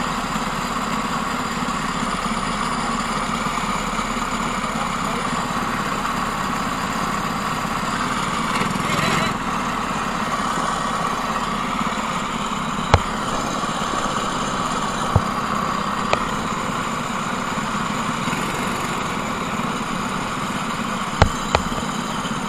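A kart engine drones loudly and steadily close by.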